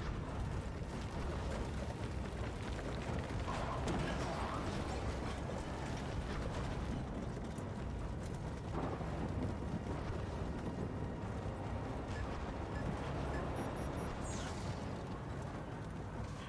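A vehicle engine rumbles steadily as it drives over rough ground.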